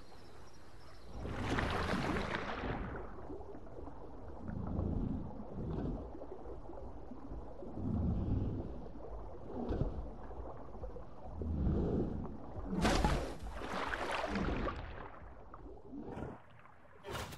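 A large creature swims underwater with deep, muffled swooshes.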